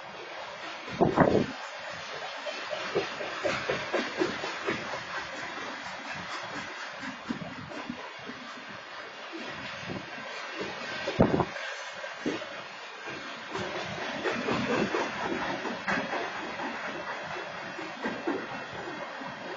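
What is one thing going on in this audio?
Freight car wheels clatter and bang over rail joints.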